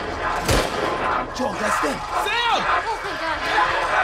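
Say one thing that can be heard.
A boy shouts urgently.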